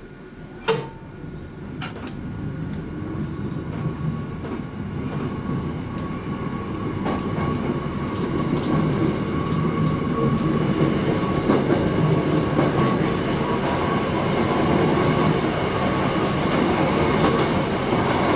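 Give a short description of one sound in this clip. A train pulls away and rumbles along the rails, growing louder as it picks up speed.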